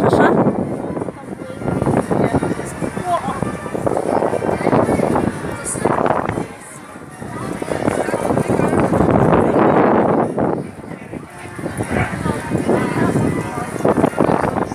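A crowd chatters.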